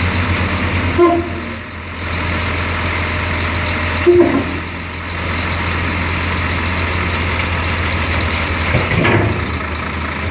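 A steel container clanks down onto a truck frame.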